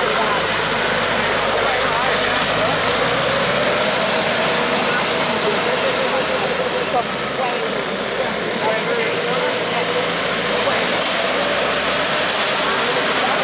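Metal crawler tracks clatter and creak over concrete.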